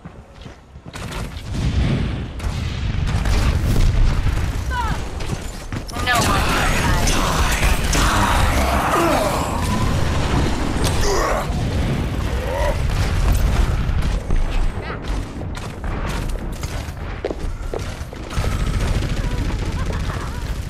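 Gunfire and energy blasts strike a shield in rapid bursts.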